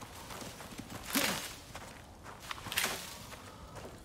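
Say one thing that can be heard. A sickle swishes through dry grass and plants.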